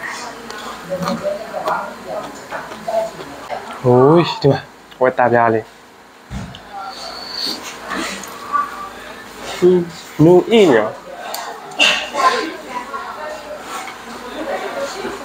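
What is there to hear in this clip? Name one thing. A young man eats and chews noisily.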